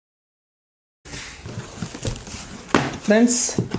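Cardboard flaps scrape open.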